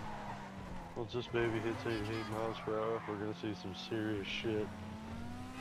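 Tyres screech on asphalt as a sports car drifts around a turn.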